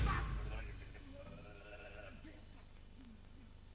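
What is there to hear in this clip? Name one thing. A cymbal crashes and rings out, slowly fading.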